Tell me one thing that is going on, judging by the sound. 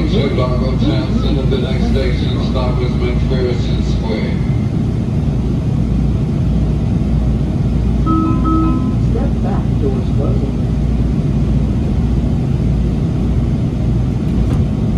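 A subway train hums steadily while standing at a station.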